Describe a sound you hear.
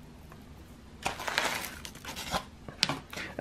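Loose soil pours from paper into a pot with a soft rustle.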